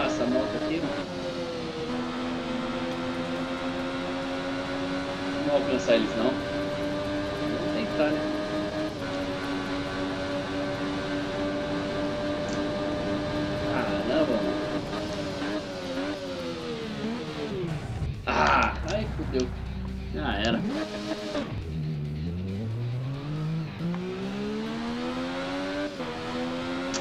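A motorcycle engine roars at high revs, dropping and climbing in pitch as it shifts gears.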